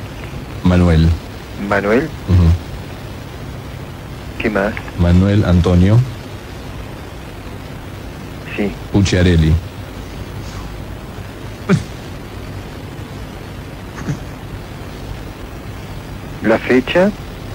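A man speaks with animation in short bursts.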